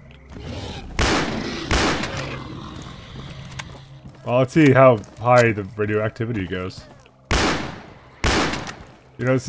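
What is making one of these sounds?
A shotgun fires loud blasts, with short echoes.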